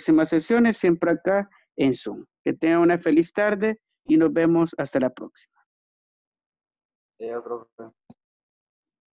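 A man talks calmly through a microphone in an online call.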